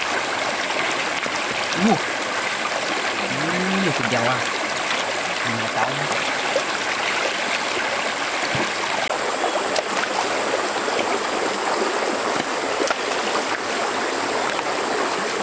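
A shallow stream flows and babbles steadily outdoors.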